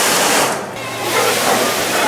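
Olives pour and rattle onto a pile.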